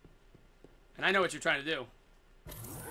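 A man speaks with animation, close to a headset microphone.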